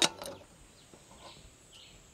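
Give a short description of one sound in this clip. A gas stove knob clicks as it is turned.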